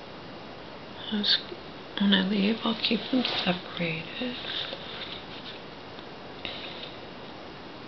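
A woman murmurs sleepily, close by.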